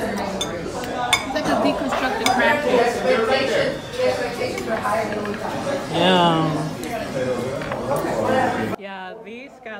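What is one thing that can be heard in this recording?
Several people chatter loudly nearby.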